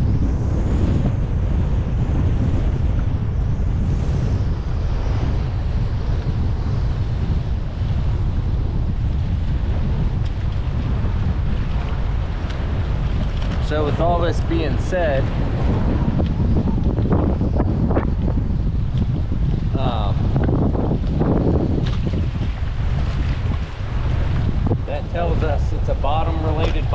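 Choppy water slaps against a small boat's hull.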